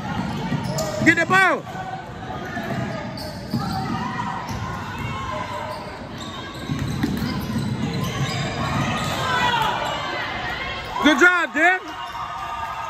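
Sneakers squeak sharply on a hardwood court in an echoing gym.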